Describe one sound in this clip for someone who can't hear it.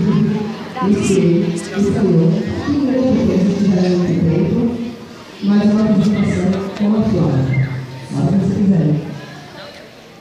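A group of young children sing together in chorus outdoors.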